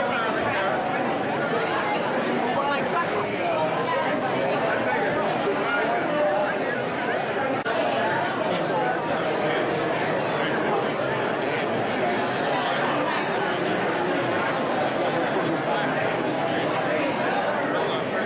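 A large crowd of men and women chatters steadily in a big echoing hall.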